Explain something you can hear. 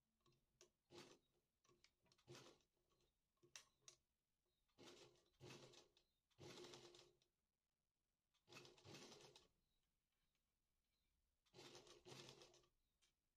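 Cloth rustles softly as it is handled.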